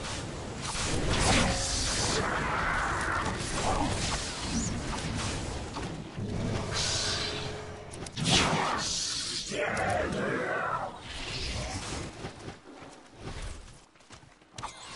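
Blows and impacts clash during a fight.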